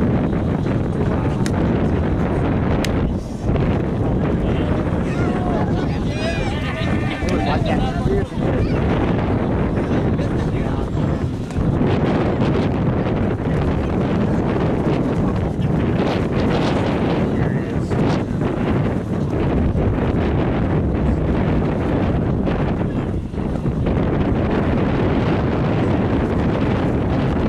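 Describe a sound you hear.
Wind blows steadily and loudly across the microphone outdoors.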